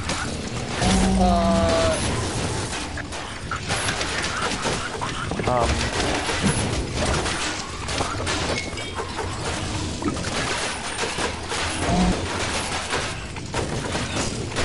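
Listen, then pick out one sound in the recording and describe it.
Spells crackle and burst with fiery blasts.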